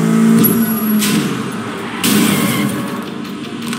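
Car tyres screech on the road as the car skids.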